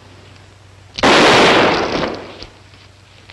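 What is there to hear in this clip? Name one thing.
A pistol fires a single loud shot that echoes away.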